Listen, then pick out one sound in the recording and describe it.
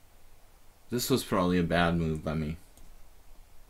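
An adult man speaks briefly through a microphone.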